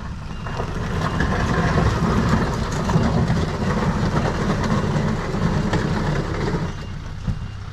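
A truck engine revs hard.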